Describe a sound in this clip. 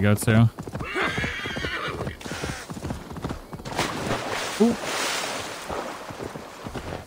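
Water splashes as a horse wades through a stream.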